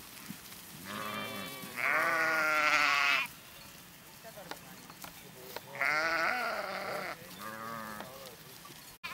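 Sheep bleat loudly nearby, one after another.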